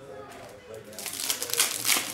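Foil card packs crinkle as they are handled.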